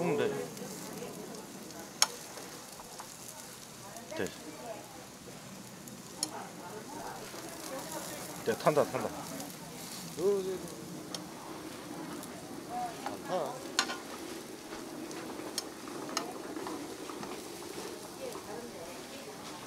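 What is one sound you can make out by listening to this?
Metal tongs click and scrape against a pan.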